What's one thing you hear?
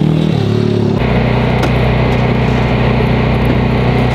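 A racing engine idles with a steady rumble.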